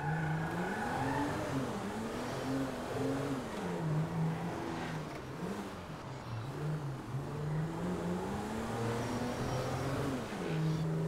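A car engine hums and revs up and down as the car drives.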